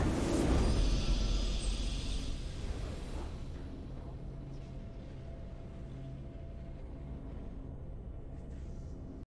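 A triumphant victory fanfare swells loudly and then fades to a low hum.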